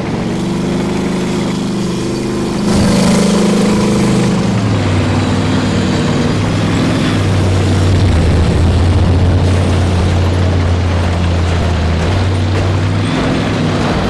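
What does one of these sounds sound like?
A tank engine rumbles steadily as the tank drives along.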